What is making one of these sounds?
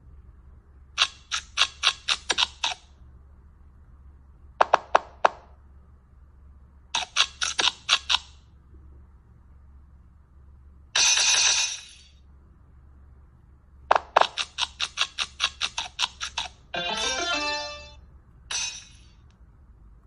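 A tablet game plays bursts of quick, bright popping chimes.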